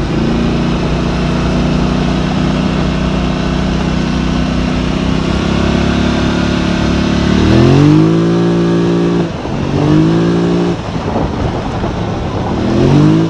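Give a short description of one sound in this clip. A vehicle engine hums steadily, then revs up through the gears as the vehicle speeds up.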